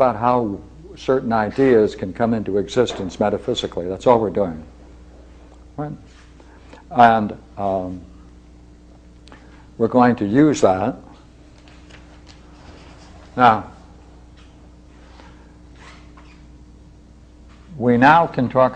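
An elderly man speaks calmly in pauses, as if lecturing.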